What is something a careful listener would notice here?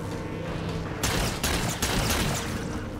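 Gunfire bursts in a video game.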